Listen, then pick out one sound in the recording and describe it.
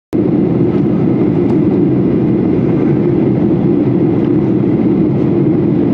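A jet airliner's engines roar steadily from inside the cabin.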